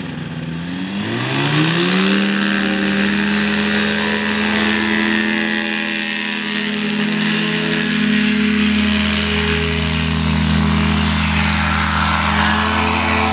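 A paramotor engine revs up to a loud roar and stays at full power.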